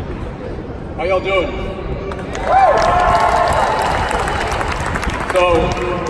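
A young man speaks through a loudspeaker.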